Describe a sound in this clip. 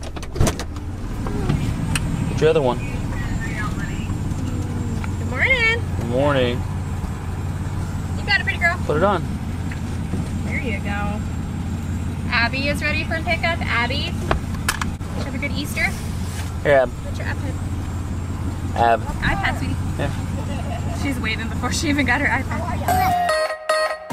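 Young girls talk and laugh nearby.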